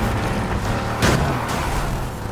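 A car crashes into another car with a loud bang.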